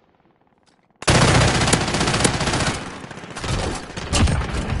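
Rapid gunshots fire in bursts close by.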